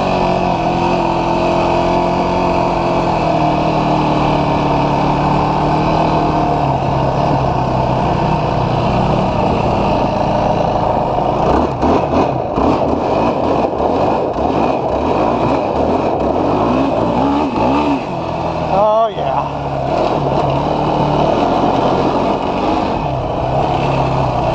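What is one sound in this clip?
A quad bike engine revs loudly up close, rising and falling.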